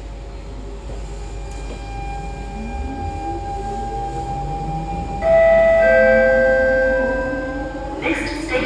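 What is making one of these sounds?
A train's motors whine, rising steadily in pitch as the train speeds up.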